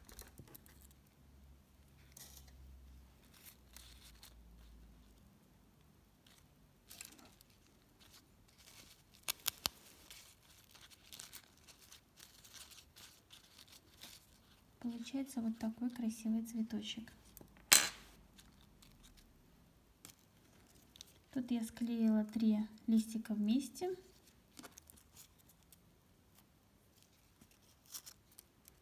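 Fabric ribbon rustles softly as fingers handle it.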